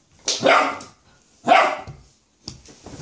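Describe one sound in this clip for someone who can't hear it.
A puppy barks and yelps close by.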